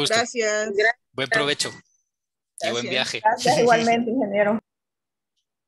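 A middle-aged man speaks with animation over an online call.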